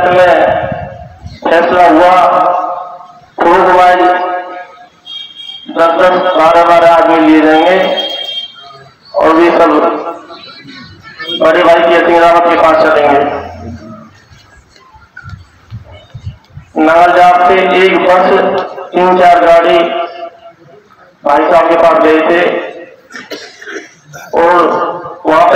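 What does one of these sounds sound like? A young man speaks loudly and forcefully into a microphone, heard through loudspeakers outdoors with pauses between phrases.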